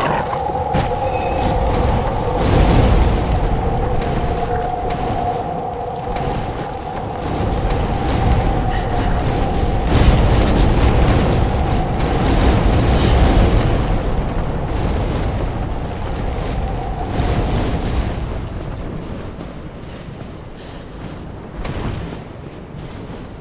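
Wind howls steadily through the trees.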